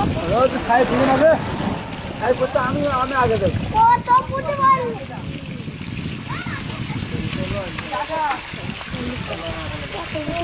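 Small fish flap and splash in shallow water.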